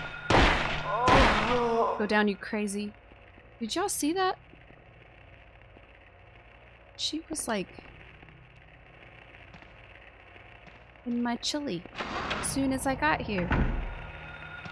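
A young woman talks with animation into a close microphone.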